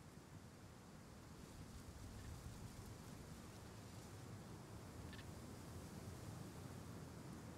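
A hoe scrapes and digs through soil.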